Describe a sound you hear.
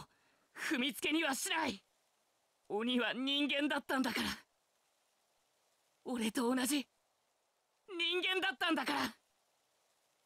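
A young man shouts with emotion, close by.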